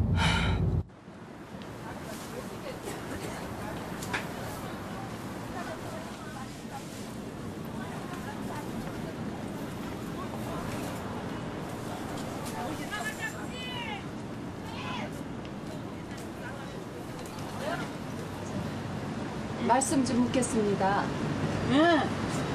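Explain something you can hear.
A crowd murmurs in a busy outdoor market.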